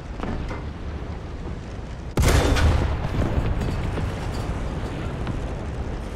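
A tank engine rumbles low and steadily.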